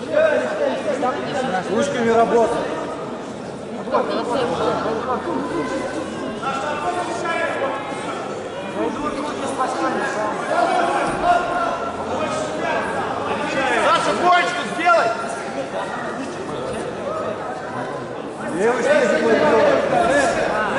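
A crowd cheers and shouts throughout a large echoing hall.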